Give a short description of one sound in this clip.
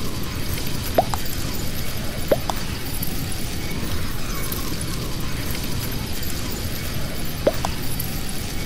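A short electronic blip sounds as each chat message arrives.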